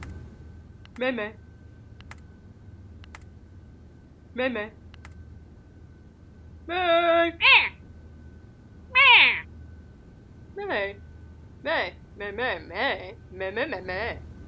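A person speaks in playful, squeaky puppet voices close by.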